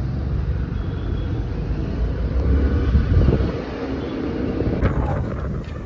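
Wind rushes past the microphone while riding.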